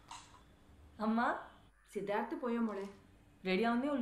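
A middle-aged woman speaks on a phone.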